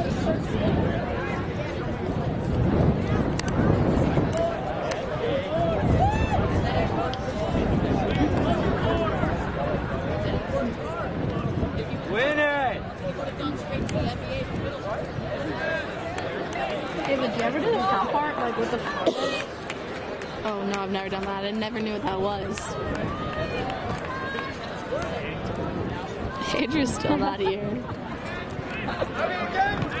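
Players shout and call to each other across an open field.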